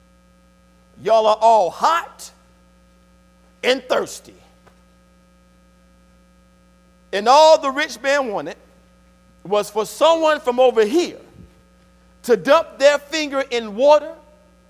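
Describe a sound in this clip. A man preaches with animation through a microphone in a large echoing hall, pausing between phrases.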